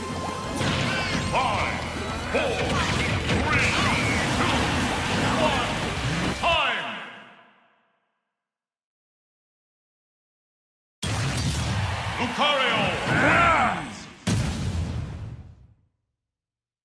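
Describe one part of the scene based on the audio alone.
A game's fighting sounds clash and burst rapidly.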